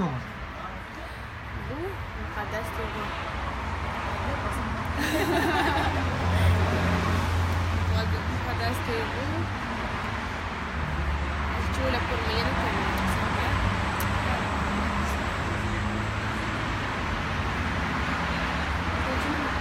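A second young woman talks close by.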